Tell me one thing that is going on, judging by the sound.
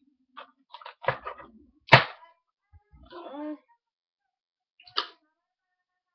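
Plastic packaging crinkles in a boy's hands.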